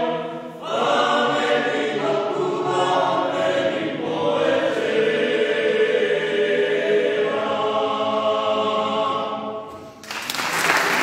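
A men's choir sings in harmony in a large echoing hall.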